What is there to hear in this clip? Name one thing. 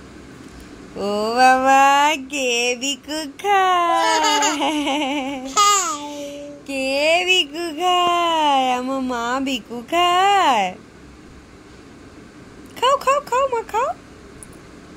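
A woman talks to a baby nearby in a playful, sing-song voice.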